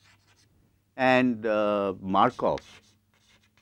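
A middle-aged man speaks loudly and drawn out into a close microphone.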